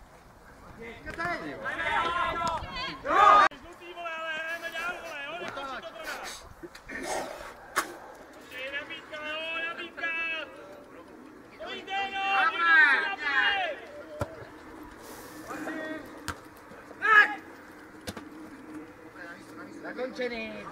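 Men shout across the field outdoors.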